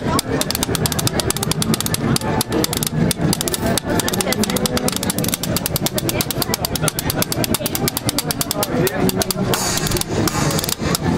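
A double bass is plucked in a steady beat.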